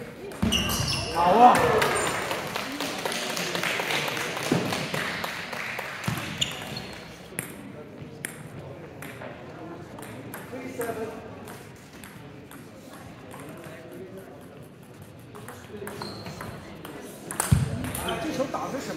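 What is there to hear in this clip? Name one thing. A ping-pong ball clicks back and forth between paddles and bounces on a table in an echoing hall.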